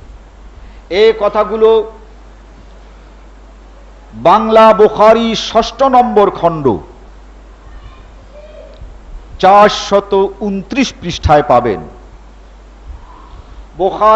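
An elderly man speaks calmly in short phrases, close to a microphone.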